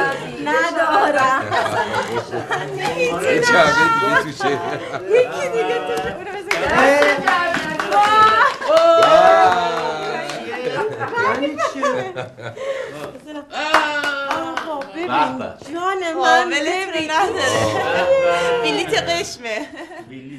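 A woman talks and laughs cheerfully nearby.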